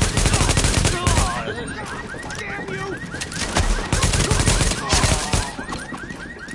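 Gunshots crack in loud rapid bursts.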